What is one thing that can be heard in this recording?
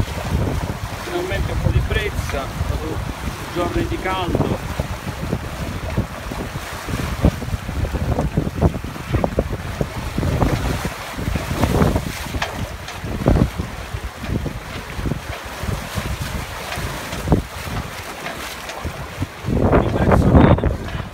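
Water rushes and splashes against a moving boat's hulls.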